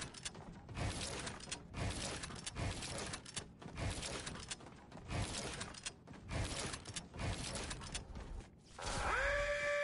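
Video game building pieces snap into place in quick bursts.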